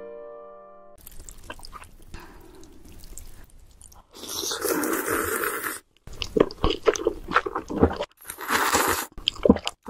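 A young woman slurps noodles close to the microphone.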